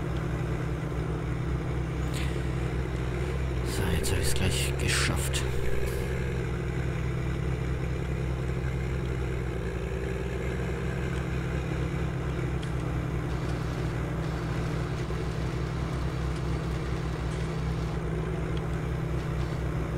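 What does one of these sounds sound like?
A tractor engine rumbles steadily at idle.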